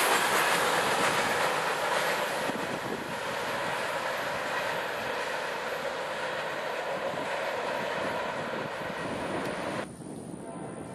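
A freight train rumbles away along the tracks, slowly fading.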